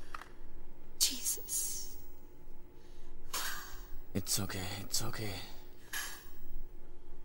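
A young woman sobs and gasps close by.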